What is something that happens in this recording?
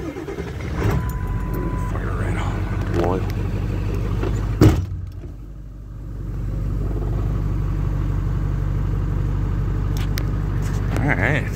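A diesel truck engine runs as the truck drives.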